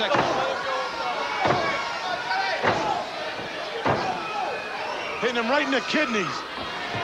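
A large crowd cheers and shouts in an echoing arena.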